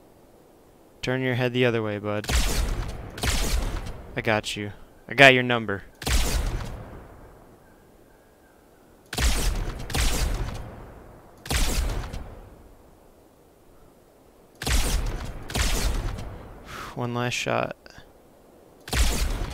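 A rifle fires loud shots, one after another with pauses between.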